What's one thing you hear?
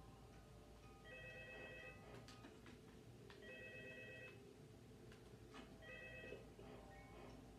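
Electronic chimes play from a television speaker.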